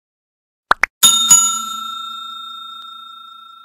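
A small bell chimes once and rings out slowly.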